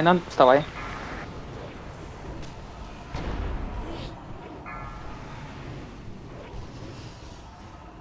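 Magical spell effects whoosh and chime in a battle.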